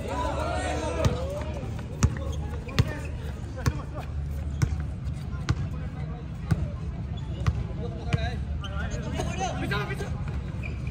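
A basketball bounces steadily on a hard outdoor court.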